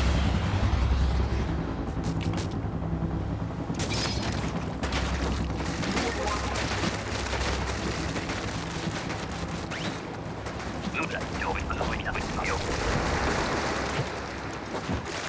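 Ink sprays and splatters wetly in quick bursts.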